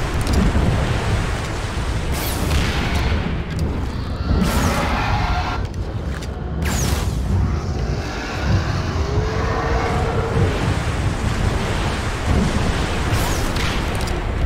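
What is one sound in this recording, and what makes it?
A huge beast growls and roars deeply.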